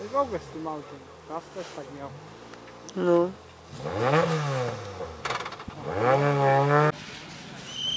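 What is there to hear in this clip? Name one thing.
A rally car engine revs hard, its pitch rising and falling sharply.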